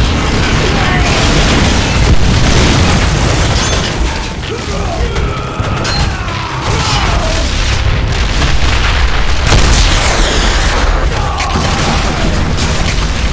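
Energy blasts zap through the air.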